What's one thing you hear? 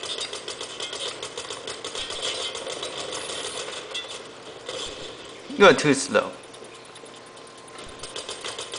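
Rapid gunfire rattles from a video game through small speakers.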